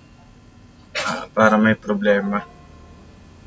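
A young man speaks briefly close to a microphone.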